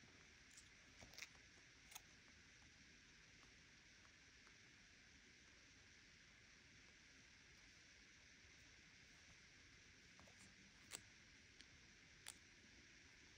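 Fingertips tap lightly on a phone's glass.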